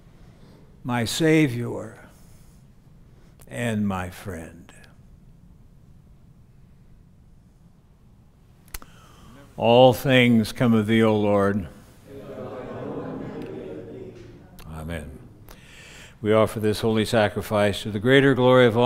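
A man chants in a slow, singing voice, echoing through a large hall.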